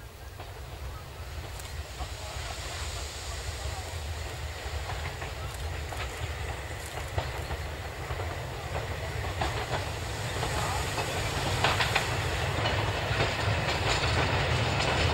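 A steam train chugs steadily in the distance, growing louder as it approaches.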